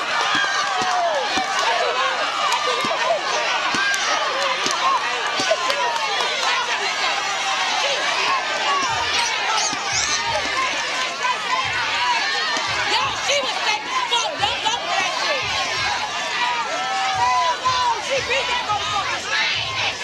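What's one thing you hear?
A crowd of women cheers and shouts outdoors.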